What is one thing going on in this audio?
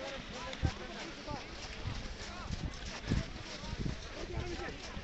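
A crowd of people chatters and calls out outdoors.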